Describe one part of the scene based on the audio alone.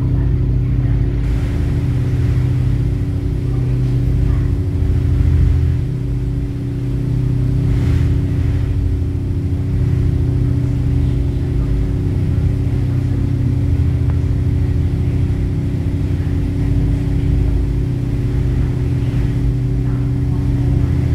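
A ferry's engine drones steadily and loudly below deck.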